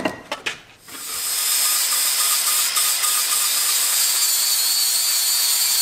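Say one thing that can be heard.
An angle grinder whines steadily as it grinds.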